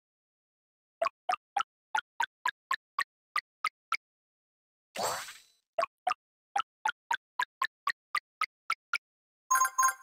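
Short bright game pops sound in quick succession.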